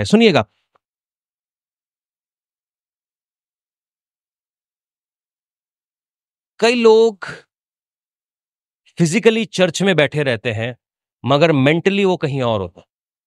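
A man speaks with emphasis through a microphone, in short bursts with pauses.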